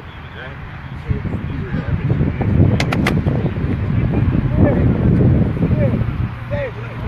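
Young men clap and shout together as a huddle breaks.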